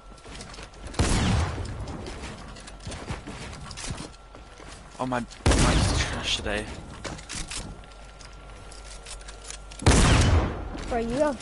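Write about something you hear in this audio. Gunshots from a video game crack in short loud bursts.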